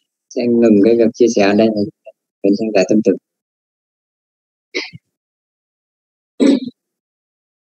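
A young man speaks calmly over an online call, in short phrases with pauses.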